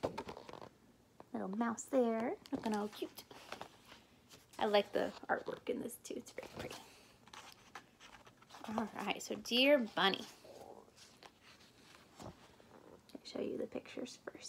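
Pages of a book turn and rustle.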